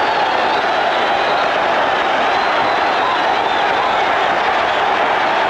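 A large crowd cheers and roars steadily.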